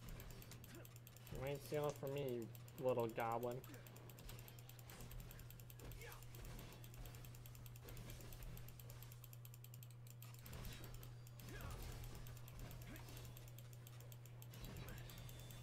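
Swords clash and slash in quick bursts during a fight.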